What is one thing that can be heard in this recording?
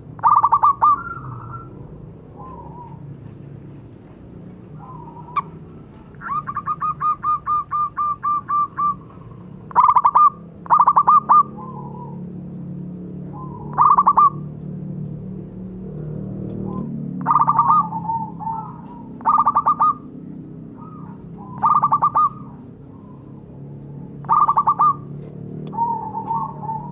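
A zebra dove coos in bursts of short trilling notes.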